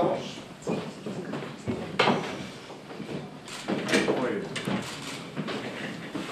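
Several men and women chat nearby in a busy room.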